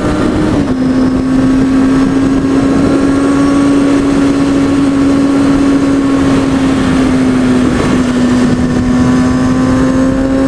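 A motorcycle engine hums steadily while riding at speed.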